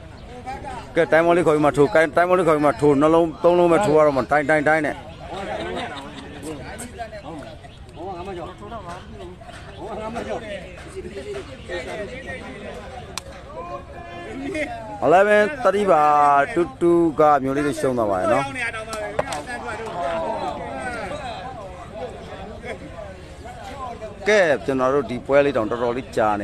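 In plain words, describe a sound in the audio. A man talks loudly and with animation.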